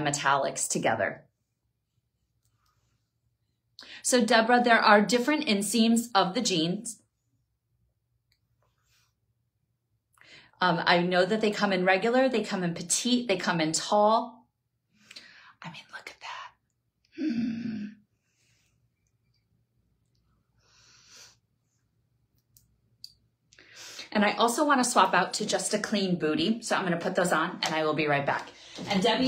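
A woman talks calmly and closely into a microphone, in bursts with pauses.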